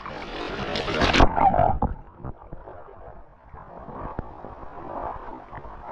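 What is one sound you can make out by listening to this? Water splashes loudly as a fish thrashes at the surface.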